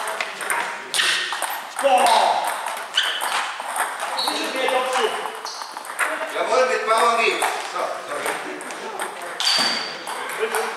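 Men talk in the background of a large echoing hall.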